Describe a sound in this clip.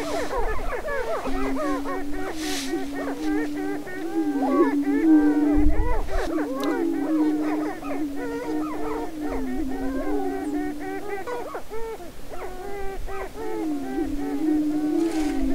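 Prairie chickens cackle and whoop in quick, busy chatter.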